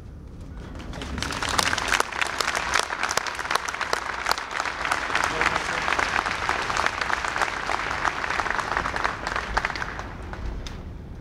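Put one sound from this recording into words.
A large outdoor crowd applauds.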